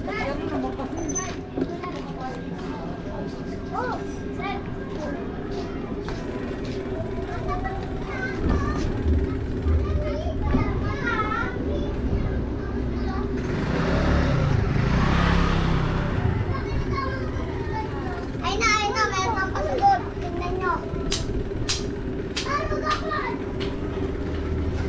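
Men and women talk nearby in the street.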